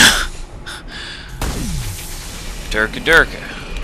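Steam hisses loudly from a pipe.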